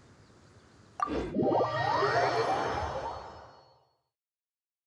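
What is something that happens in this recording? A shimmering magical whoosh swells and fades.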